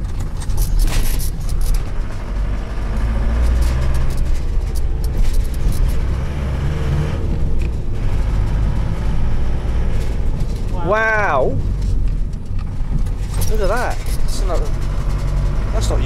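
A vehicle engine hums low and steady from inside the cab.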